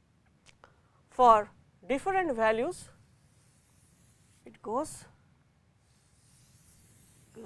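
Chalk scrapes and taps on a board.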